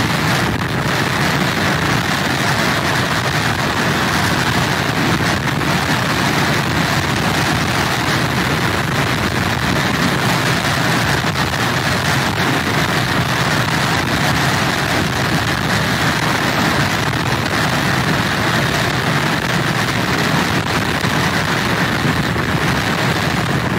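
Heavy surf crashes and roars against a pier's pilings.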